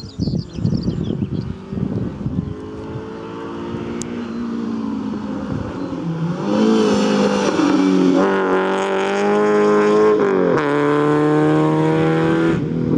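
A rally car engine snarls in the distance, then roars louder as the car approaches and passes.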